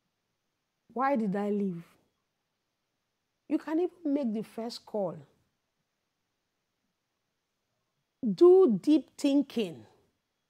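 A woman speaks expressively into a close microphone, in short bursts with pauses.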